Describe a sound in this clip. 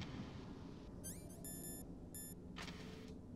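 Short electronic beeps sound as a menu opens.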